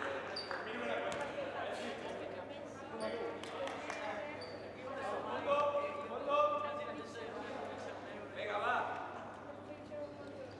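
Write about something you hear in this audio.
Players shout and call out to each other across an echoing hall.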